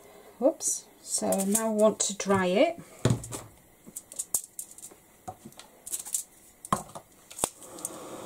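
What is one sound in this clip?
Aluminium foil crinkles under a hand.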